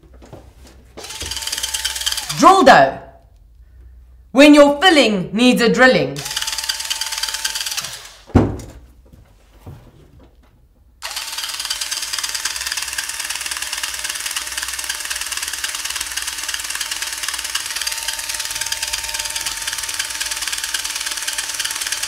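An electric drill whirs in short bursts and then runs steadily.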